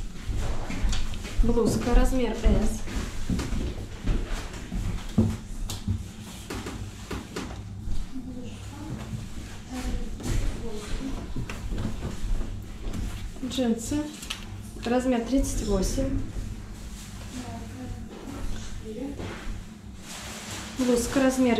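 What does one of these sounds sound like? Fabric rustles as hands smooth and lay out clothing.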